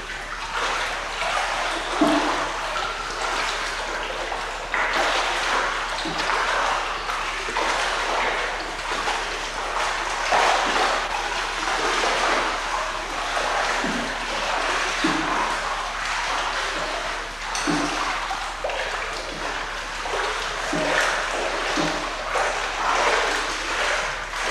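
Water churns and splashes steadily in an echoing indoor pool.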